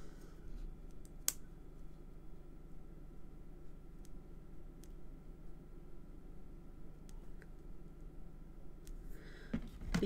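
Hands slide and tap card pieces on a table.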